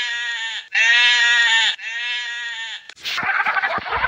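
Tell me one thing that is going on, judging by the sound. Sheep bleat.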